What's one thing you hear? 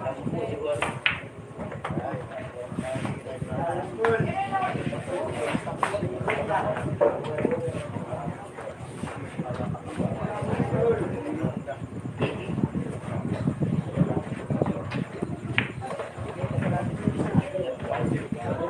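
Billiard balls click together and knock against the cushions.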